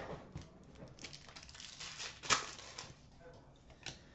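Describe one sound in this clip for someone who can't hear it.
A plastic wrapper crackles as it is torn open.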